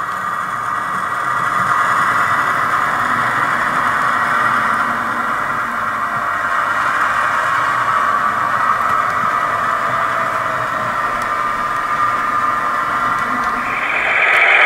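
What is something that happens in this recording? A model train rattles and hums steadily along its tracks.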